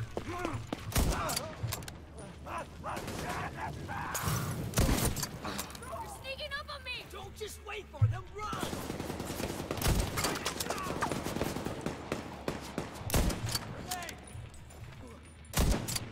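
Rifle shots fire in loud, sharp bursts.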